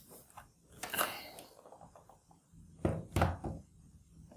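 A laptop is turned over and set down on a wooden surface with a knock.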